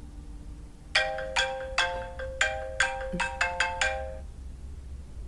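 A mobile phone plays a ringing tune.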